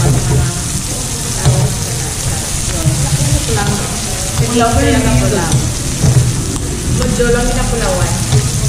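Meat sizzles on a grill.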